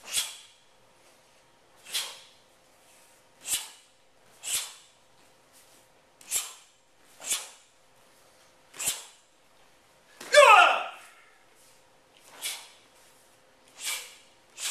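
A martial arts uniform snaps sharply with each quick strike and block.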